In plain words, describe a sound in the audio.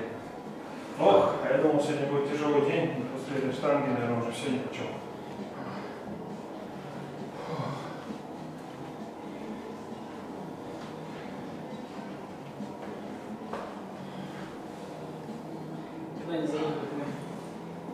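A man talks nearby in a room with some echo.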